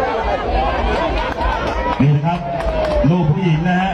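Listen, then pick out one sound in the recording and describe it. A crowd cheers and chatters.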